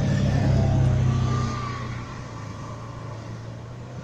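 Heavy trucks rumble along the road, their diesel engines growling.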